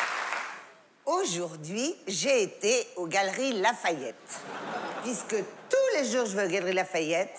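A middle-aged woman speaks expressively into a microphone on stage.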